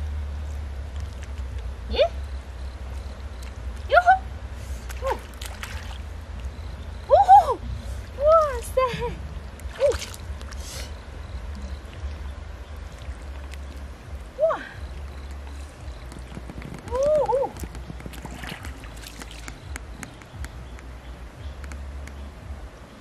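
Hands squelch and slap in wet mud.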